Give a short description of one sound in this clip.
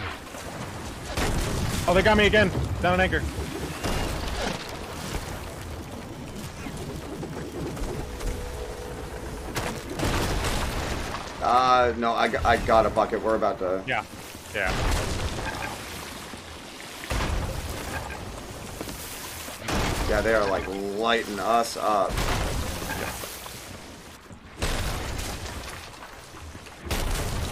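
Stormy sea waves roll and crash.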